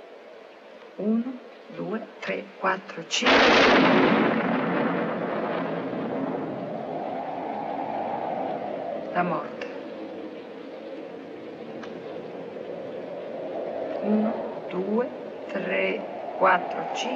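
A woman speaks softly and slowly, close by.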